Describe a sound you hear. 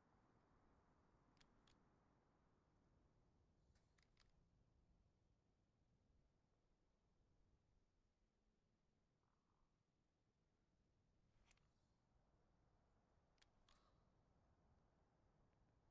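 A rifle clicks and clinks as it is handled.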